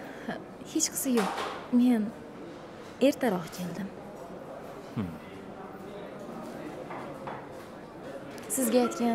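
A young woman speaks softly and with emotion, close by.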